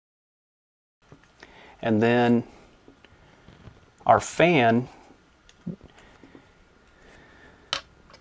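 A plastic case clicks as it is fitted together.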